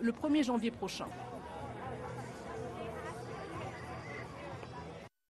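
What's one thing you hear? A crowd of people talks and murmurs outdoors.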